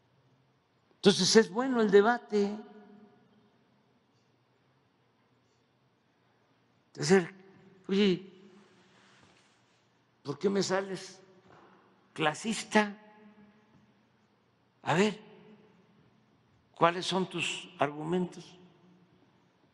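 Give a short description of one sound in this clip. An elderly man speaks slowly through a microphone in an echoing hall, with long pauses.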